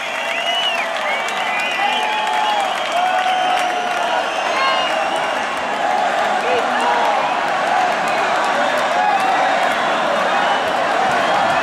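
Fans in a crowd whistle shrilly.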